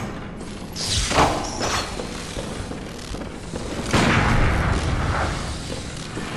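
A weapon swings and crackles with electric sparks.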